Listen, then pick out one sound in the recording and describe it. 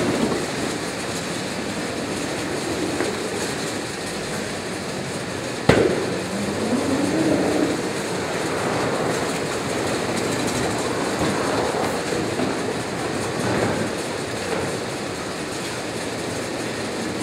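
Cardboard boxes thump and bump against the rollers and each other.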